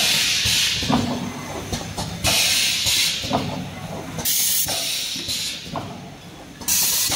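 Compressed air hisses in short bursts from a machine.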